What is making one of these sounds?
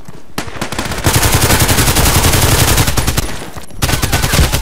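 A pistol fires a rapid series of loud shots.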